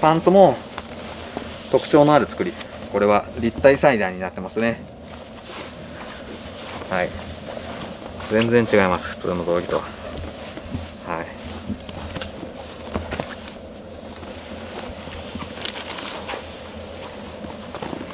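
Fabric rustles and swishes as a garment is handled.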